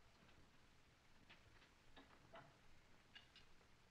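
A man handles tools at a wooden crate with small clinks and knocks.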